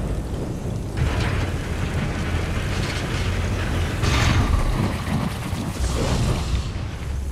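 Jets of fire roar in bursts.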